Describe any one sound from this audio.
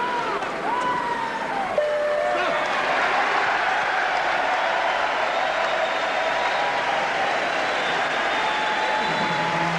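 Spectators whistle loudly.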